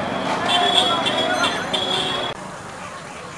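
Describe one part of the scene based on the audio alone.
Vehicle horns honk repeatedly in busy street traffic.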